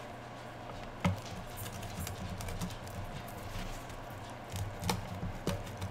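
A knife crunches through a pizza crust.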